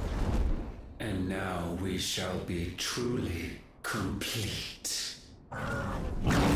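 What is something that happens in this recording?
A man speaks slowly in a deep, menacing voice.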